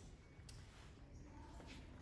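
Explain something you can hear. Cloth rustles softly as a man folds shirts.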